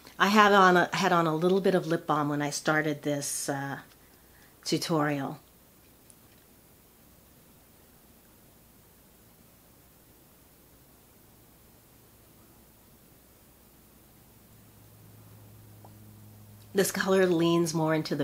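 A middle-aged woman speaks warmly and clearly close to a microphone.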